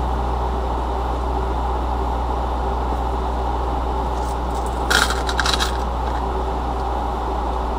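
A car rolls slowly closer over crunching gravel.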